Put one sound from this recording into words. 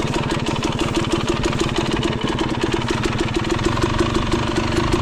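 A dirt bike engine idles with a steady, rapid chugging throb close by.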